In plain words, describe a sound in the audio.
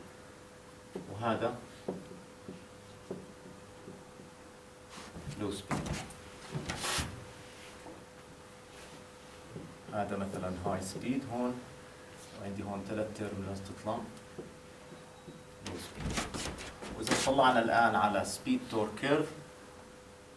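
A middle-aged man lectures calmly in a room with some echo.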